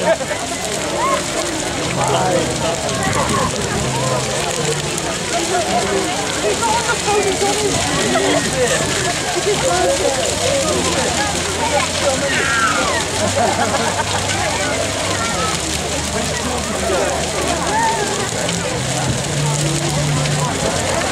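A large bonfire roars and crackles.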